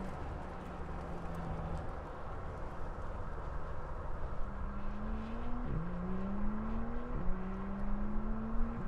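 A sports car engine roars and revs higher through its gears.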